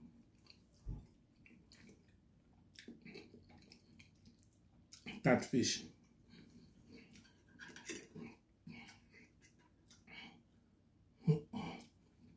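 A man eats close by, chewing and smacking his lips.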